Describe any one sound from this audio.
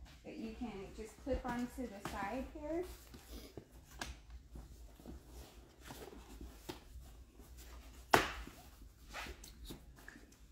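A folding baby cot's frame clicks and clatters as it is handled.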